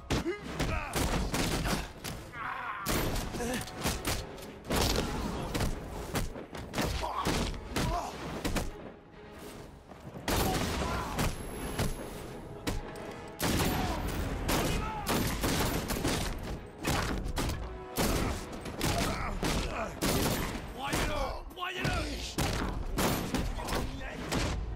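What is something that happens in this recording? Punches and kicks land with heavy thuds in a fast brawl.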